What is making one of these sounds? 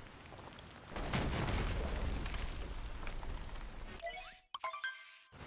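A huge stone pillar crashes down with a deep rumble.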